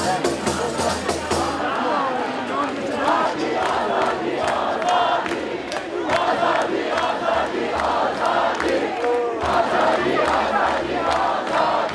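A crowd of men and women chants and shouts loudly outdoors.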